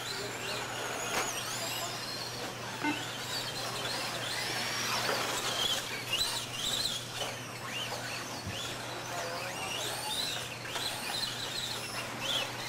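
Small electric motors whine and rise and fall in pitch as toy cars race over dirt.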